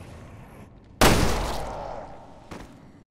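A gunshot bangs loudly and echoes.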